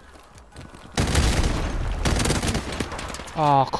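Automatic gunfire rattles in bursts.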